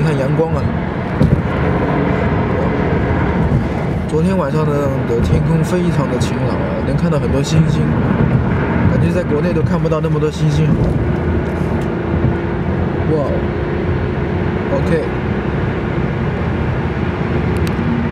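A car drives along a highway with a steady rumble of tyres and engine.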